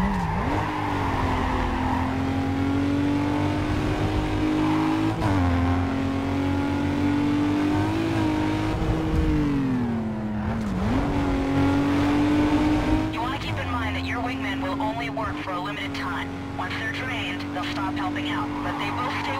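A car engine roars at high revs, rising and falling as the gears shift.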